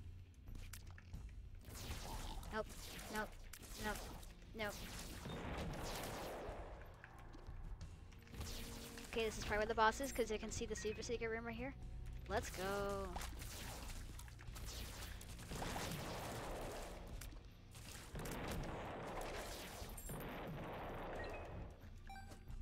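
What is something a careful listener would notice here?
Small shots pop rapidly in a video game.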